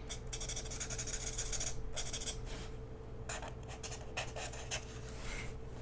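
A marker pen squeaks and scratches across paper.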